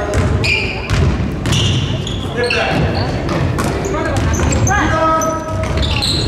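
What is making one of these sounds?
Young players shout to each other across an echoing hall.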